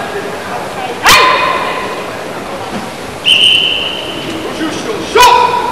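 A crowd of spectators murmurs softly in a large echoing hall.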